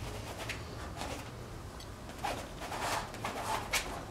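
A paintbrush scrapes through oil paint on canvas.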